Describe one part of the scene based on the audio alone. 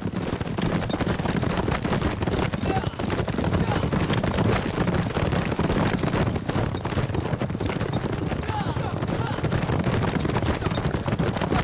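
Many horses gallop, their hooves pounding on dry ground.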